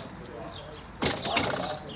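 A door clicks and rattles as it opens.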